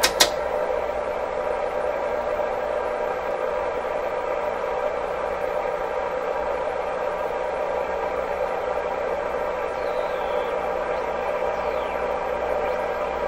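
An electronic instrument gives off a steady buzzing hum.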